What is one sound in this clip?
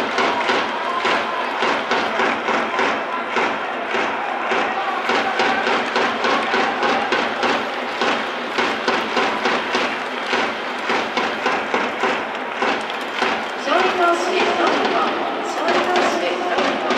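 A large crowd claps in a steady rhythm in a big open stadium.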